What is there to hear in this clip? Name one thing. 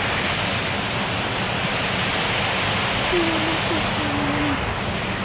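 Water rushes steadily over a small weir outdoors.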